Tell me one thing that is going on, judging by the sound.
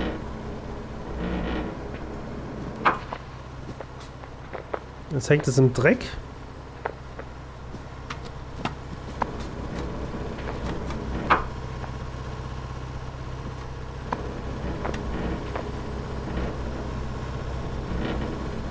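An excavator engine hums steadily.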